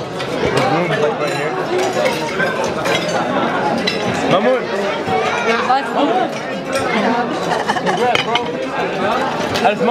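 A crowd of people chatter in a busy room.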